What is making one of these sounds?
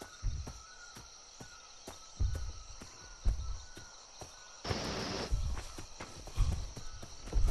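Footsteps thud softly on the ground.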